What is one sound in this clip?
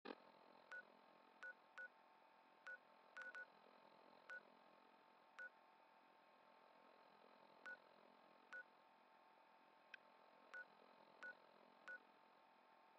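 A handheld device gives short, soft beeps again and again.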